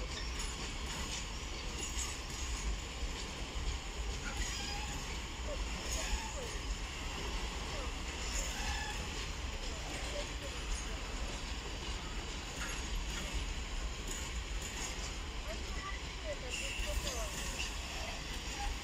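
A freight train rolls past with wheels clattering steadily on the rails.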